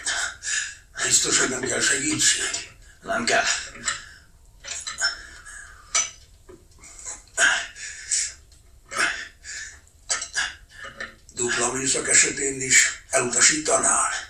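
A second man answers in a low, quiet voice.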